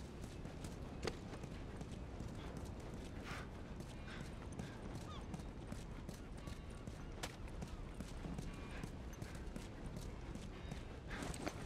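Footsteps crunch over gravel and grass at a walking pace.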